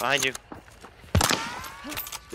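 A gun fires a loud, sharp shot.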